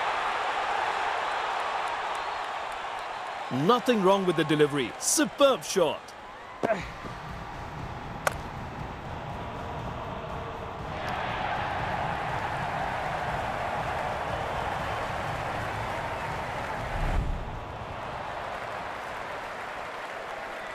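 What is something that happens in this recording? A stadium crowd cheers in a steady roar.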